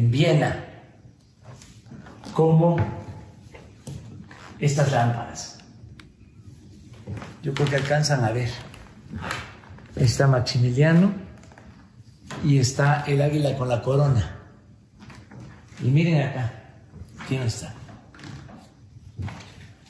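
An elderly man speaks calmly and close by, in phrases with pauses, in a room with a slight echo.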